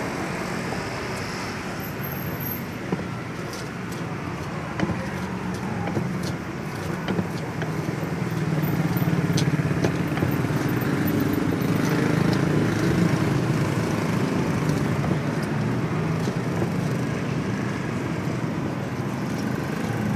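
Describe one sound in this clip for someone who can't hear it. A pestle grinds and crushes food in a stone mortar, with sharp knocks.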